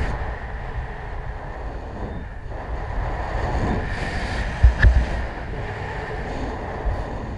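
Wind buffets a microphone in low rumbling gusts.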